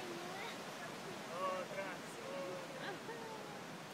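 Waves wash onto a beach in the distance.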